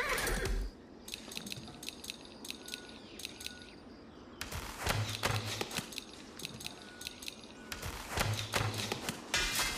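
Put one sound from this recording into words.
Short, sharp game clicks sound in quick bursts.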